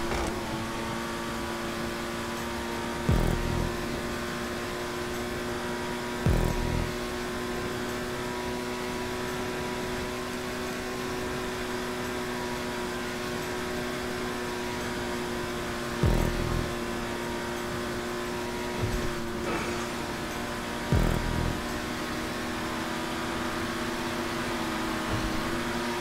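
A sports car engine roars at full throttle.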